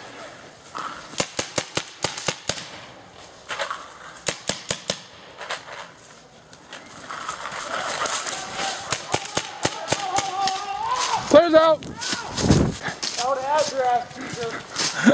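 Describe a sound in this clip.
Paintball guns fire in quick bursts of sharp pops nearby.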